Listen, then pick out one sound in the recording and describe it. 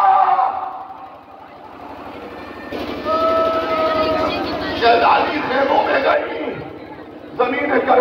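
A large crowd of men chants and calls out loudly outdoors.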